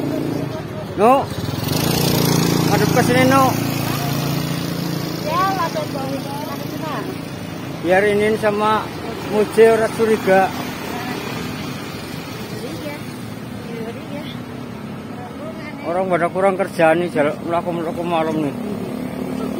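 Young women chat and laugh close by, outdoors.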